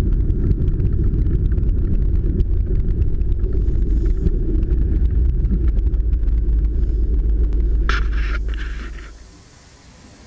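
A V8 car engine rumbles as the car drives slowly, heard from inside the cabin.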